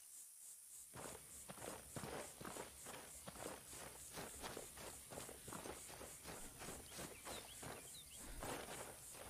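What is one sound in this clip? Footsteps crunch steadily over grass and leaves.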